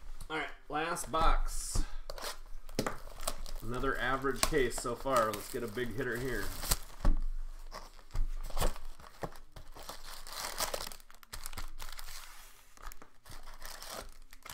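Plastic wrapping crinkles and rustles as hands handle a box.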